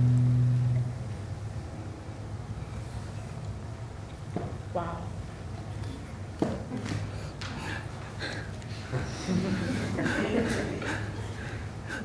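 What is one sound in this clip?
Bare feet shuffle and thump on a wooden stage.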